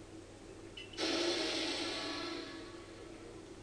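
A creature lets out a loud, harsh cry.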